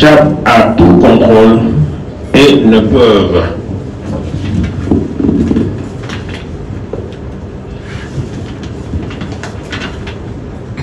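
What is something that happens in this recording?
A man reads aloud into a microphone in a loud, amplified voice.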